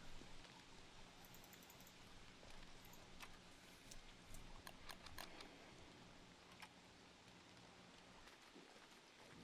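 Rain patters down steadily.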